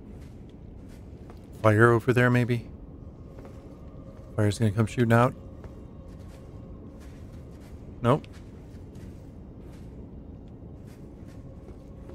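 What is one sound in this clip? Footsteps crunch softly on dry straw.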